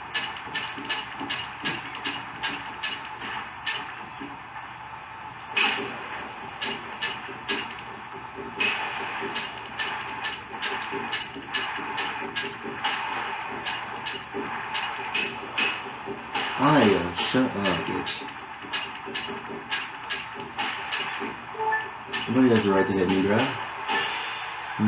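Game sounds of swords clashing play from a television speaker, with sharp repeated clacks.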